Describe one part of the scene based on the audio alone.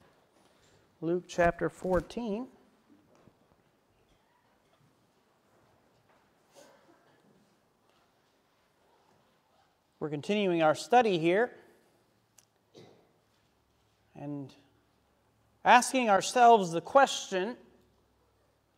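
A man speaks calmly into a microphone, in short phrases with pauses, in a slightly echoing hall.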